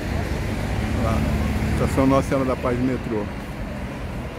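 A young woman talks briefly nearby.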